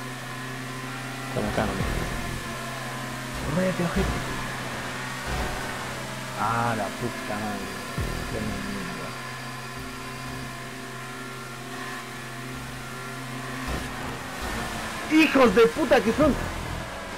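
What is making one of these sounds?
A race car engine hums steadily at high speed.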